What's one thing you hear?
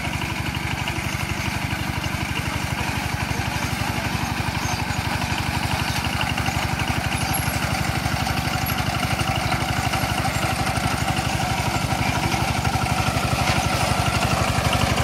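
A flail mower whirs as it cuts through grass.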